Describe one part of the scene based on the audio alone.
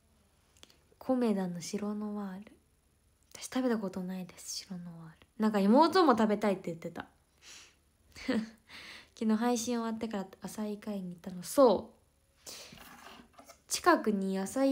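A young woman speaks casually and close to a microphone.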